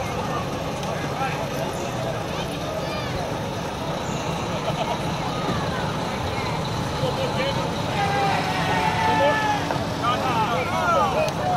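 A diesel semi truck rumbles as it rolls slowly past.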